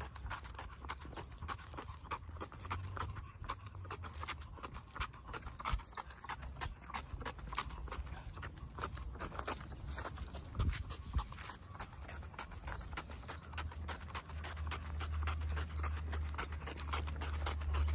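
A small dog's paws patter quickly on pavement.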